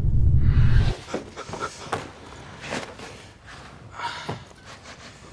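An elderly man breathes heavily nearby.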